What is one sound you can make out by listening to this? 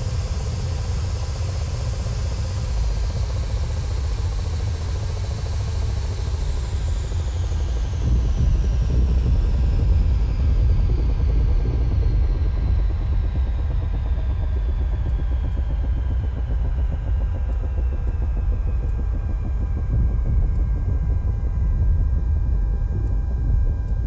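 A helicopter's turbine engine whines and slowly winds down.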